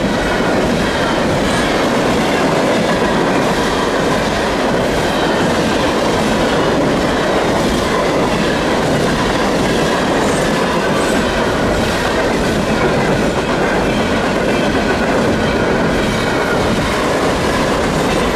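A level crossing bell rings.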